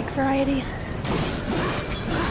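Metal blades clash and slash in a fight.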